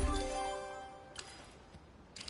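A short bright chime rings out and fades.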